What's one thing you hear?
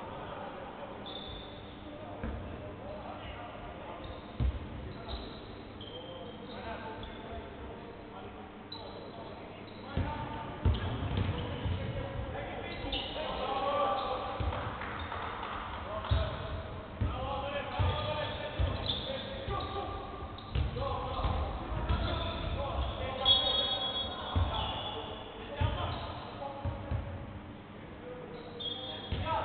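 Young men call out to each other across an echoing hall.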